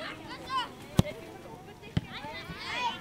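A football is kicked with a sharp thump.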